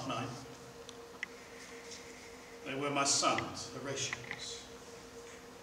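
An elderly man speaks expressively, with pauses.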